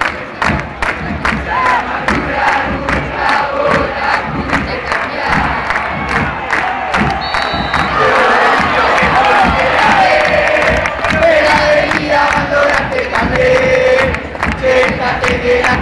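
A crowd claps and stomps in a steady beat.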